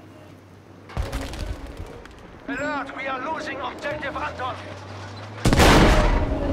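A rifle fires with a loud crack.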